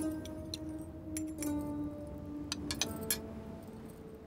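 A teacup clinks against a saucer.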